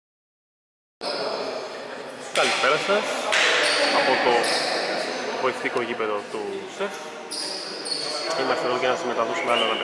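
Men call out and talk in a large echoing hall.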